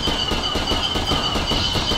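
An explosion bursts with a loud bang.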